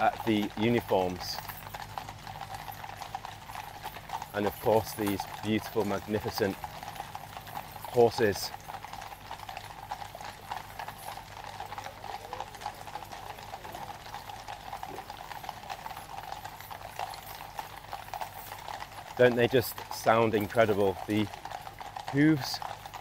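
Horses' hooves clop slowly on a hard path outdoors.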